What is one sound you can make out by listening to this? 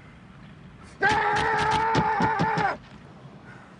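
A young man whoops and laughs loudly up close.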